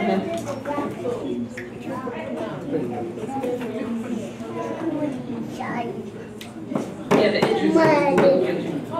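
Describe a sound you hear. A woman speaks calmly into a microphone, heard through a loudspeaker.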